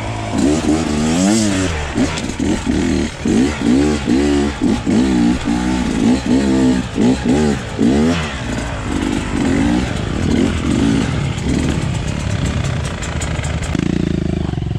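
A dirt bike engine revs hard up and down close by.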